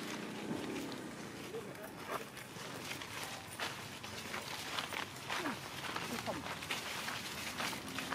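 Dry leaves crunch underfoot.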